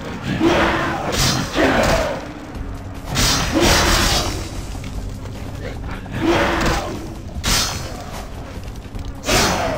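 Electricity crackles and hisses in short bursts.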